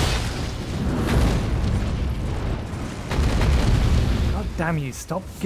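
A heavy blast rumbles deeply.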